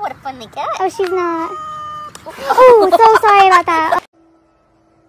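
A woman speaks and laughs with animation close by.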